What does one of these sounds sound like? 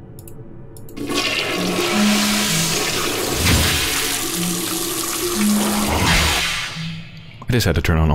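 Water gushes steadily from a tap.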